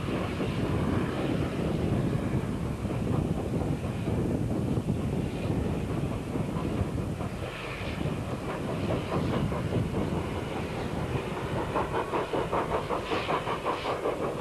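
Steel wheels rumble and clatter over a bridge.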